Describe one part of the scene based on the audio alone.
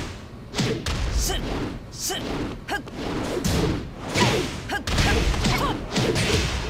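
Punches and kicks land with sharp, smacking hits.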